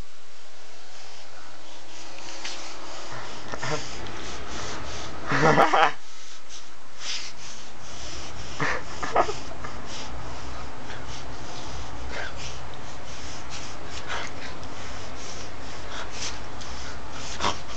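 A young man makes playful growling noises up close.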